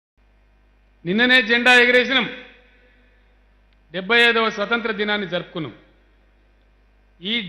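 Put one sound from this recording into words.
An older man speaks calmly into a microphone.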